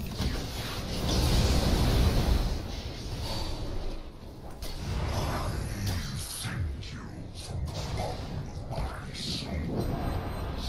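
Fiery magic blasts burst and crackle in a game battle.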